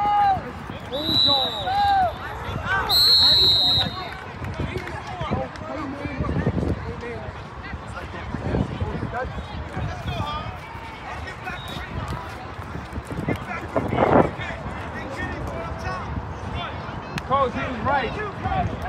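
A crowd of children and adults shouts and cheers outdoors.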